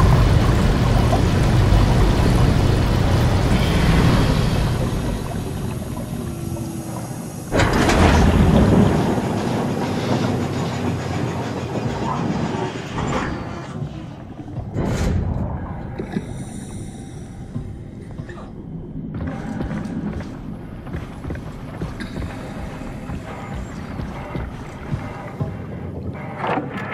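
Deep underwater water rumbles and murmurs all around.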